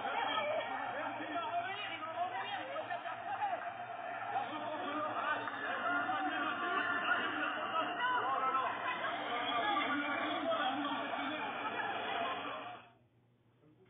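A crowd of protesters shouts and chants outdoors, heard through a phone speaker.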